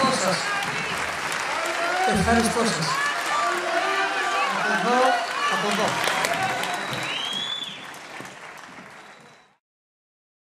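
A large audience applauds and cheers loudly, then fades out.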